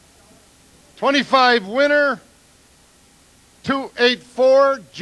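An elderly man speaks loudly and expressively into a microphone.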